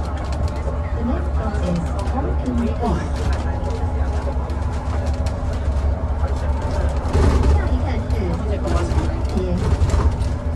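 Young men talk quietly nearby.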